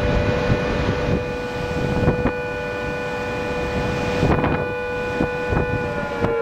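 Waves break and wash up onto a shore.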